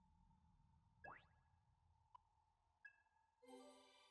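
A short electronic chime sounds as a choice is confirmed.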